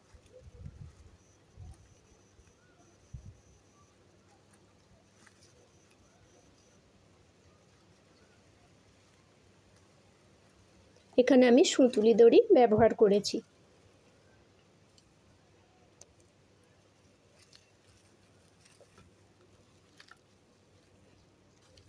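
Twine rustles softly against coarse fibre as it is wound and pulled tight.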